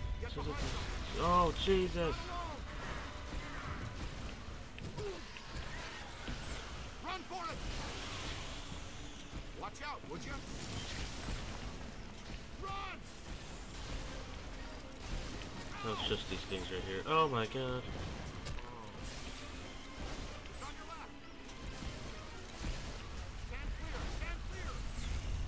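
A beam weapon crackles and zaps in bursts.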